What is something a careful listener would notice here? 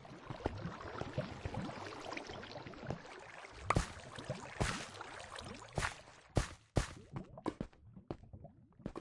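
Lava bubbles and pops nearby.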